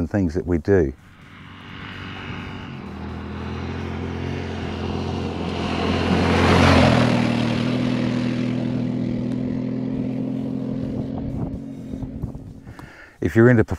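A motorcycle engine roars closer, passes by and fades into the distance.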